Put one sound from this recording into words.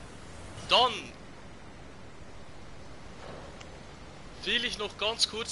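A man speaks with animation into a headset microphone.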